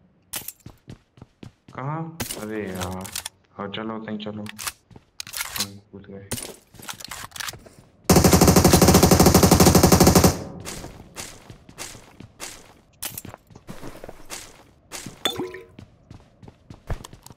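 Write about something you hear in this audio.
Footsteps patter on a hard floor.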